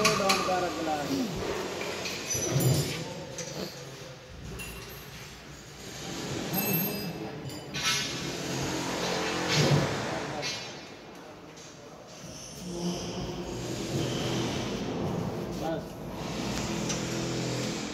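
A wooden block scrapes and knocks against a metal machine frame.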